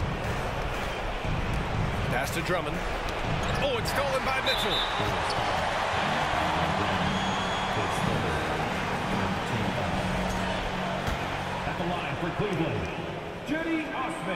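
A large crowd cheers loudly in an echoing arena.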